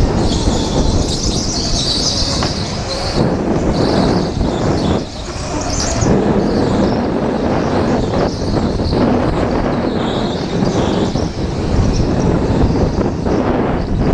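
Kart tyres squeal on a smooth floor.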